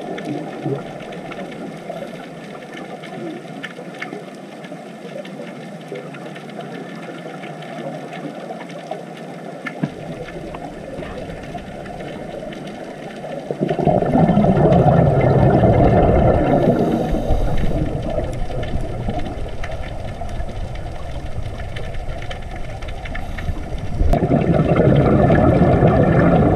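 Scuba divers' bubbles gurgle and rush underwater.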